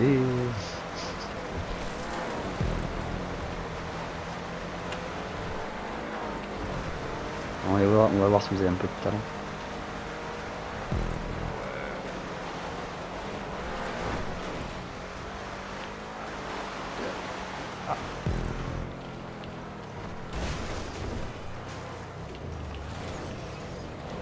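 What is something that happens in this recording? A car engine roars steadily on a rough dirt track.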